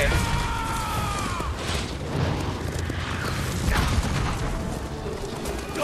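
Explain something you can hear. A horse's hooves gallop on the ground.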